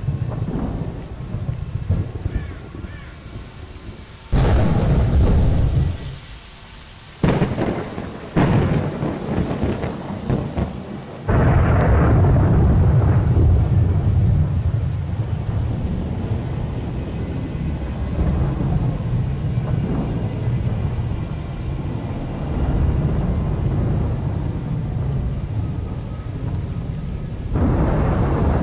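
Wind blows in steady gusts outdoors.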